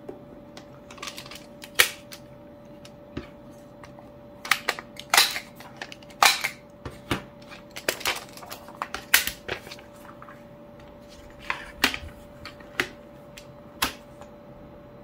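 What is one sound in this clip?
Paper rustles and slides as sheets are handled.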